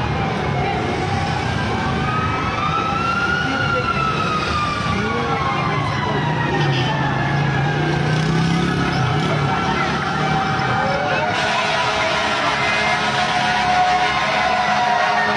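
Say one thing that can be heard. Car engines idle nearby in stopped traffic.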